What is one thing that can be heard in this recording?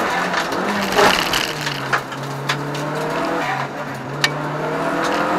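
A car's body rattles and knocks on bumps.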